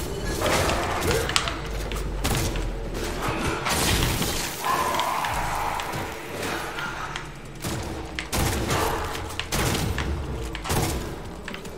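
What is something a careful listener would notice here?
Creatures shriek and scream in pain.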